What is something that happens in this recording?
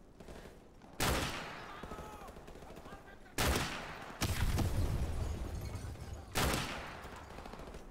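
Loud sniper rifle shots crack and echo, a few seconds apart.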